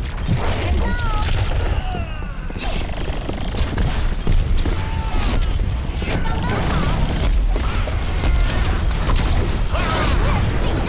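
Game gunfire crackles in quick bursts.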